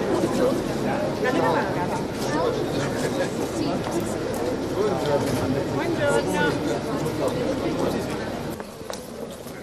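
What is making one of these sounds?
Several people murmur and chatter nearby.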